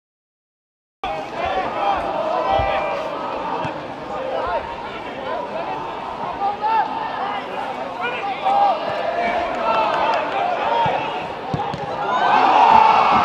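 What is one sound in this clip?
A crowd murmurs in an outdoor stadium.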